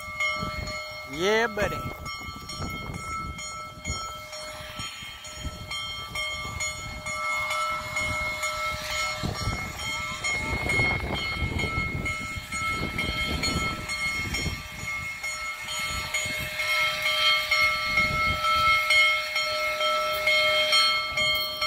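A steam locomotive idles with a steady hum nearby.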